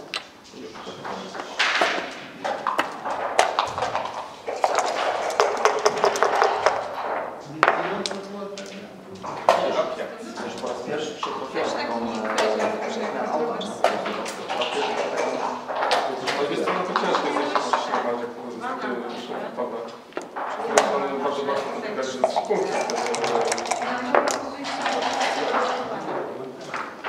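Dice rattle inside a cup.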